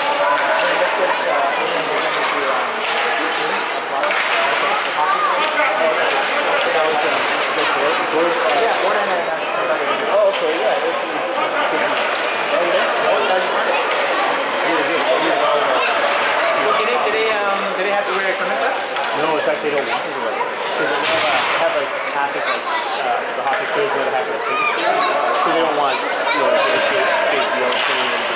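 A crowd of children and adults chatters throughout in a large echoing rink.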